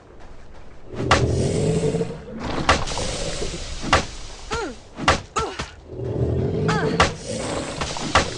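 Zombies growl and groan.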